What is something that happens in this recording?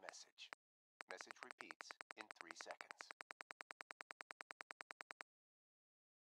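Soft menu clicks tick rapidly in a steady run.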